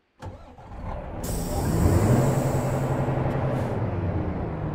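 A truck engine revs up and then settles back.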